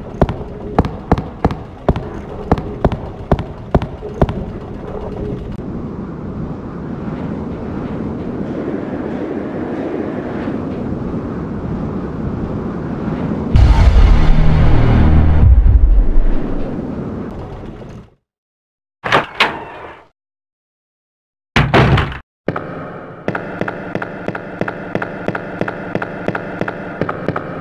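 Quick footsteps thud across a hard floor.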